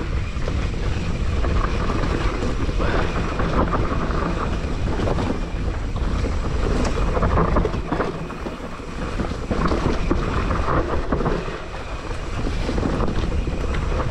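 A bicycle's frame and chain clatter over bumps.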